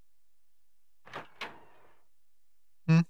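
A wooden door creaks open slowly.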